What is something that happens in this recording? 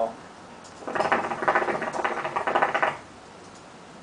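Water bubbles and gurgles rapidly in a hookah.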